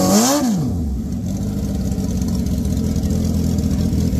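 A motorcycle engine revs hard as its rear tyre spins and screeches.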